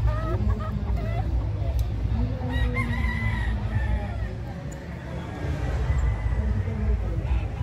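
Roosters cluck and call nearby.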